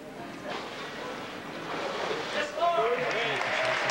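Water splashes as a person is dipped under and lifted out.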